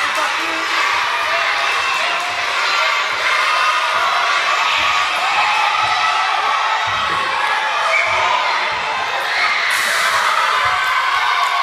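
A crowd of children cheers and shouts loudly in a large echoing hall.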